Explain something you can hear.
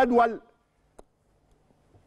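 A plastic ball clicks.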